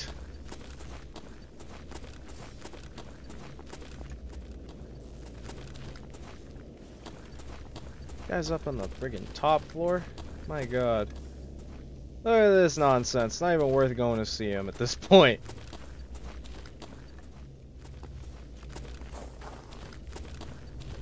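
Footsteps crunch on a debris-strewn floor.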